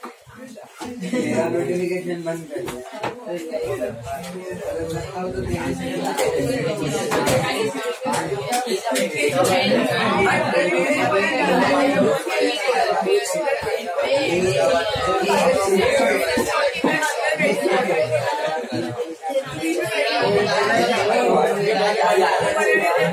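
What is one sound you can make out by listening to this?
A young man talks aloud to a room.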